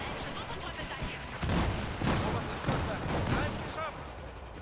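Explosions boom and rumble close by.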